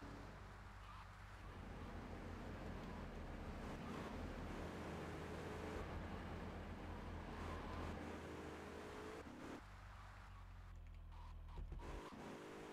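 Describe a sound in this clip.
A car engine hums steadily as it drives.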